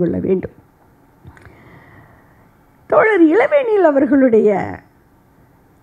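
A middle-aged woman speaks earnestly into a microphone, heard through a loudspeaker.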